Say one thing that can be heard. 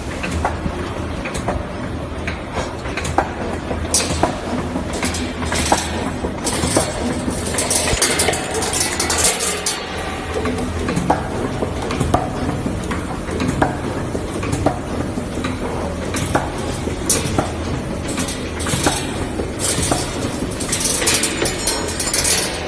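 Metal wire clicks and clanks as a machine bends it.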